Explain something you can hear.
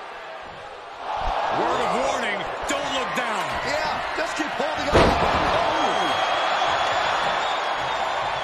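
A large crowd cheers in a big echoing arena.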